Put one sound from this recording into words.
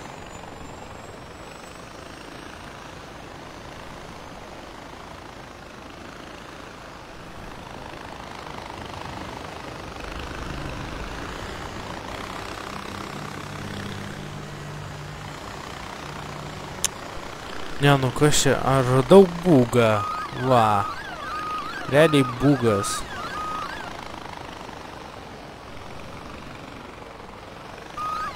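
A small rotor aircraft engine drones steadily overhead.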